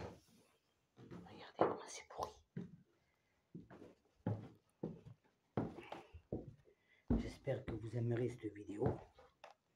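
Footsteps scuff and tap on concrete stairs.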